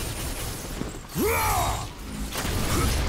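A blade whooshes through the air.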